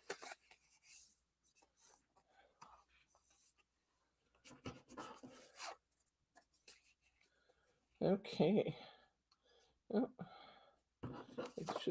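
Paper rustles as it is handled.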